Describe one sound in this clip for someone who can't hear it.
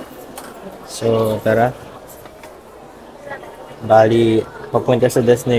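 A ticket machine plays a recorded voice prompt through a small loudspeaker.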